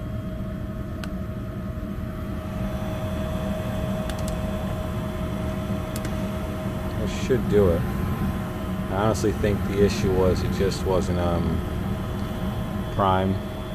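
A furnace blower hums steadily nearby.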